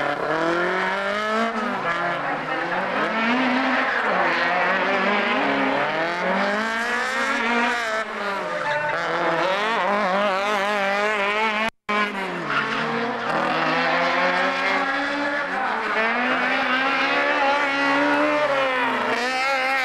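A car engine revs hard and falls back.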